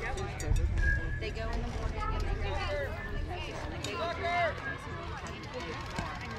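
Young players and men call out and chatter across an open field.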